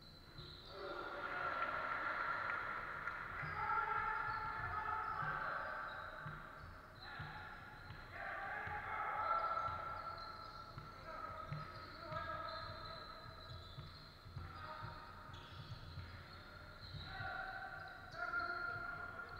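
A basketball bounces on a hard floor with dull thuds.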